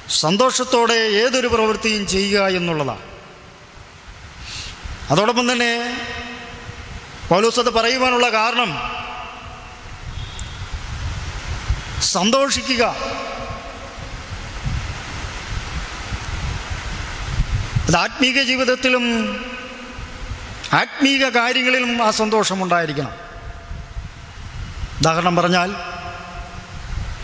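A man sings slowly into a microphone, in drawn-out phrases with pauses between them.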